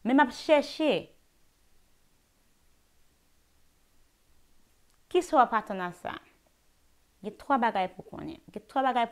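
A young woman speaks calmly and clearly into a close microphone, with pauses.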